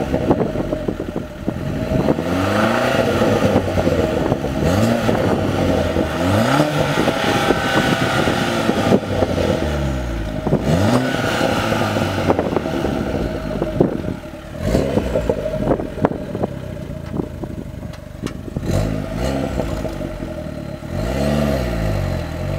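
A turbocharged four-cylinder hatchback with a sport exhaust revs while standing still.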